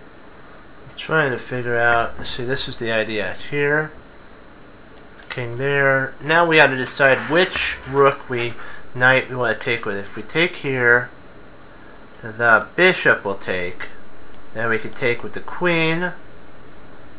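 A middle-aged man talks calmly into a close microphone, pausing between phrases.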